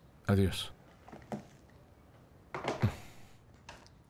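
A phone handset clunks down onto its cradle.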